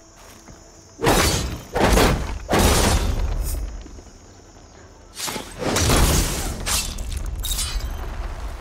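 Magic energy blasts burst with loud whooshing roars.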